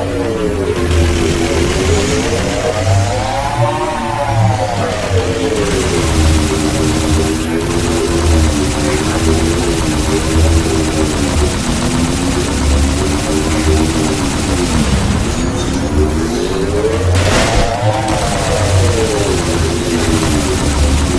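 A hovering vehicle hums steadily, its whine rising and falling in pitch.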